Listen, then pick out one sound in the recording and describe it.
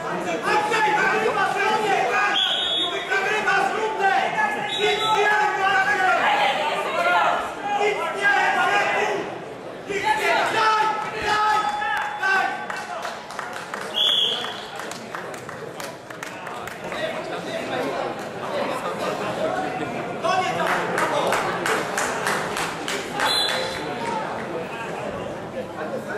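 A crowd shouts and cheers in a large echoing hall.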